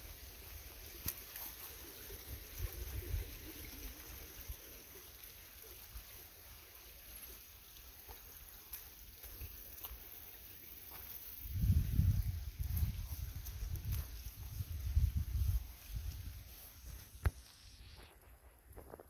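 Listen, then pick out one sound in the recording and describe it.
Footsteps crunch slowly on a gravel path.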